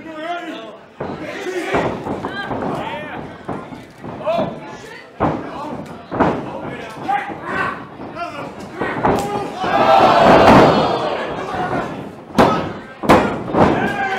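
Bodies slam onto a wrestling mat with sharp thuds.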